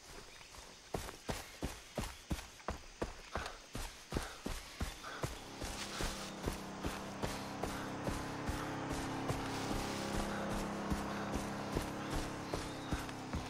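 Footsteps crunch steadily on dirt and grass.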